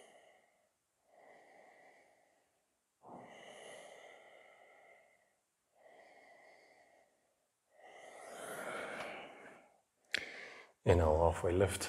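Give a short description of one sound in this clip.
A man breathes slowly and deeply in and out.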